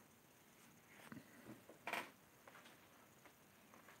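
A small figurine is set down on a hard surface with a soft knock.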